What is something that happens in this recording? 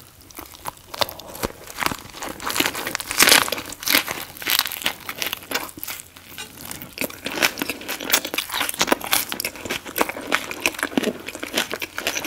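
A woman bites into a crisp, wet food roll close to a microphone.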